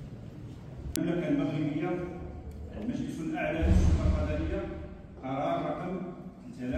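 A man speaks formally into a microphone, heard through loudspeakers in an echoing hall.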